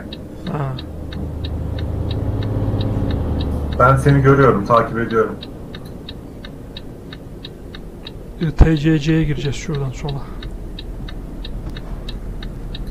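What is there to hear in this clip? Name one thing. A turn signal ticks steadily.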